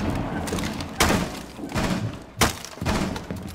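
A knife hacks at wooden boards with sharp splintering knocks.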